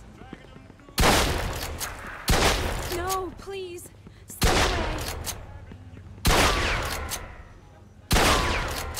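Loud shotgun blasts boom one after another, each followed by a ringing echo.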